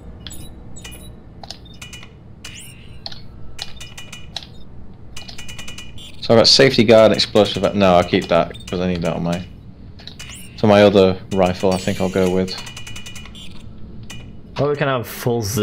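Short electronic menu blips sound as selections change.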